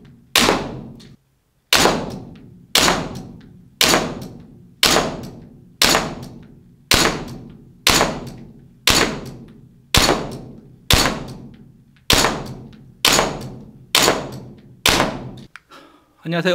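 Gunshots ring out one at a time at a steady pace, each echoing briefly.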